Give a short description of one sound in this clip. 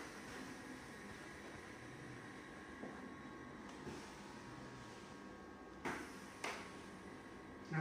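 A massage chair motor hums and whirs steadily.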